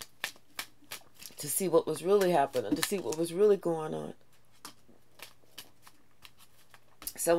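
Paper cards rustle and flick in a woman's hands.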